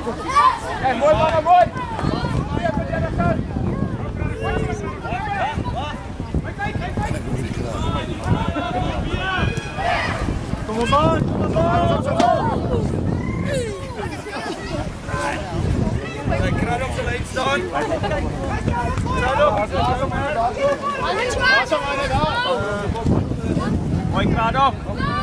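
Young children shout and cheer excitedly close by.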